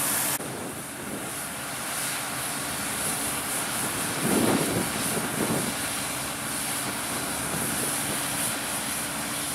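Grain pours in a steady rushing stream into a trailer.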